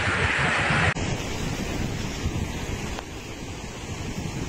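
Muddy floodwater rushes past.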